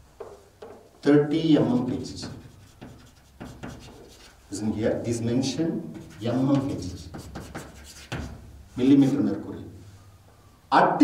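A man lectures in a calm, clear voice close to a microphone.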